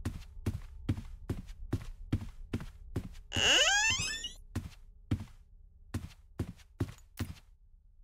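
Footsteps thud at a steady pace on a hard floor.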